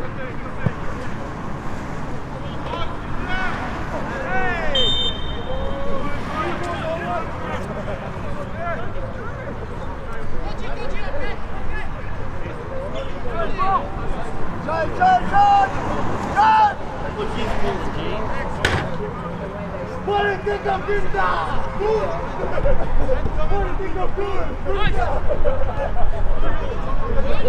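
Spectators close by chat and call out outdoors.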